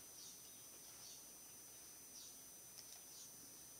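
A computer mouse clicks a few times close by.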